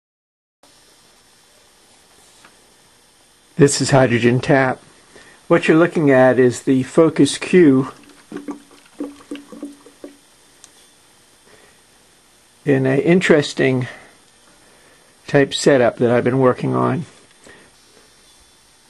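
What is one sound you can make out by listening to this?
Fine gas bubbles fizz up through water in an electrolysis cell.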